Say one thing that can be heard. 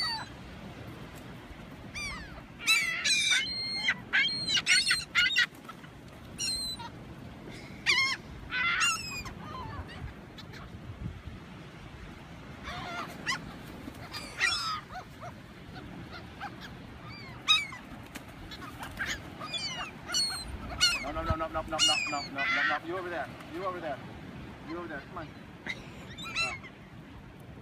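Waves wash softly onto the shore.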